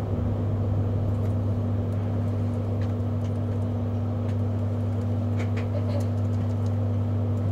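A vehicle's engine hums steadily at idle.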